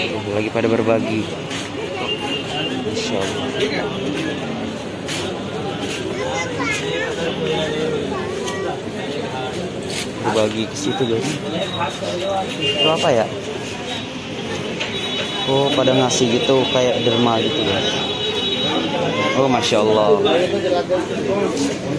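A busy crowd chatters all around.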